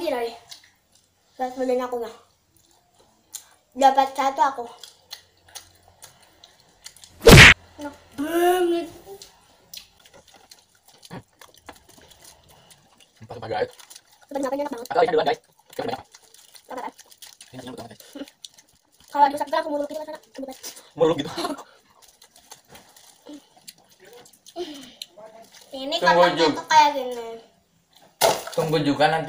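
A young man and a girl chew and smack their lips close to a microphone.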